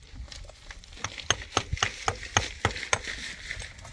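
A trowel taps sharply and repeatedly on stone.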